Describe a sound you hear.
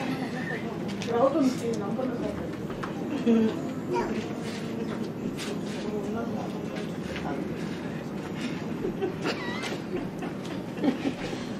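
A crowd of men and women talks and murmurs nearby outdoors.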